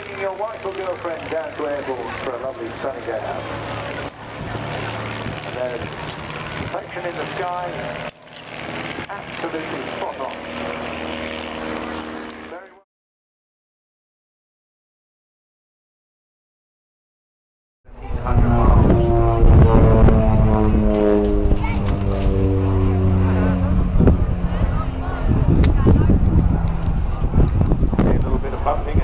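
A propeller plane engine drones overhead, its pitch sliding down as it passes.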